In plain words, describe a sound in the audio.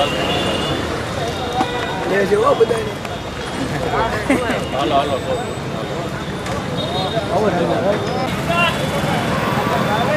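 A crowd of men talk over one another outdoors.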